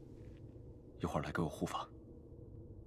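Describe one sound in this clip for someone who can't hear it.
A second young man speaks with some urgency, close by.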